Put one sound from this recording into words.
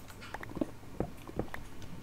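A game's pickaxe chips at stone blocks.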